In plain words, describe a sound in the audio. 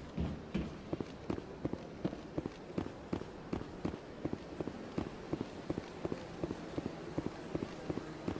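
Footsteps run quickly and steadily on a hard walkway.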